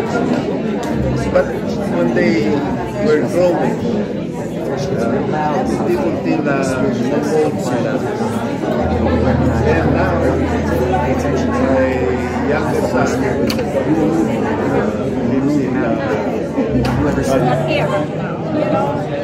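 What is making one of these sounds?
Many voices chatter in the background of a room.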